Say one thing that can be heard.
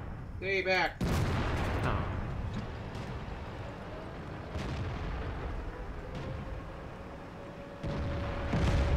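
A tank cannon fires with heavy booms.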